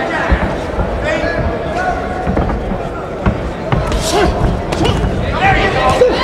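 A crowd cheers and shouts in a large arena.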